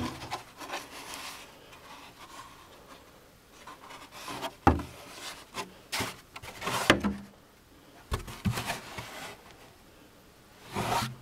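Plastic parts knock and scrape as hands handle a plastic lid.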